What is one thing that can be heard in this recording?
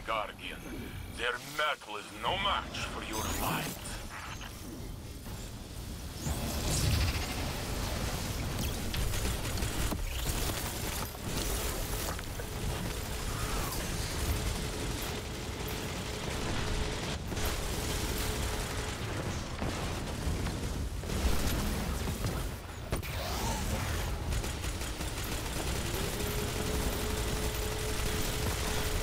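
A man talks casually into a microphone.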